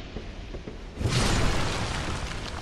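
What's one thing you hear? A blade strikes a creature with a heavy thud.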